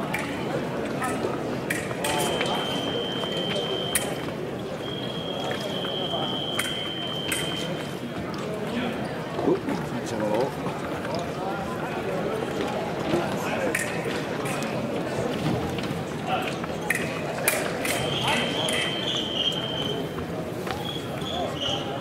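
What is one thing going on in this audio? Footsteps shuffle and squeak quickly on a fencing strip.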